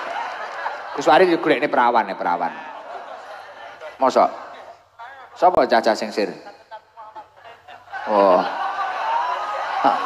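A crowd laughs loudly in a large room.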